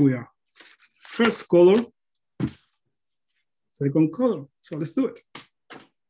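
Sheets of paper rustle as they are lifted.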